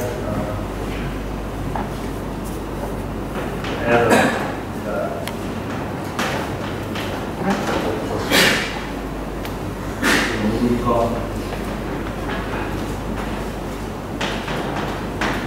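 Chalk taps and scratches on a blackboard as a man writes.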